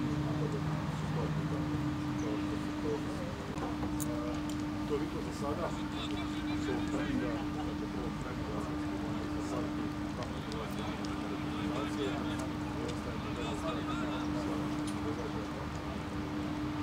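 Men call out to each other outdoors.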